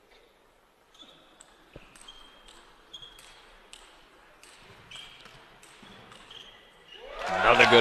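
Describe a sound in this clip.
A table tennis ball clicks rapidly back and forth off paddles and the table.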